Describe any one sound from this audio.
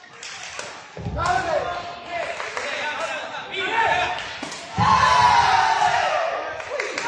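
A ball is kicked with a sharp thump.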